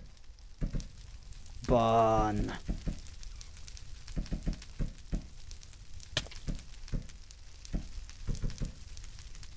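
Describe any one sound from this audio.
Fire crackles and pops steadily.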